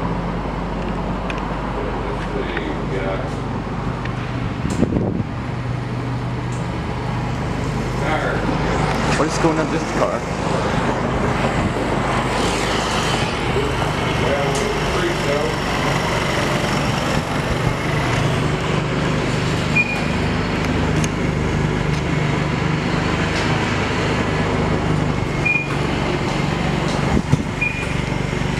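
A pickup truck's engine idles with a steady low hum.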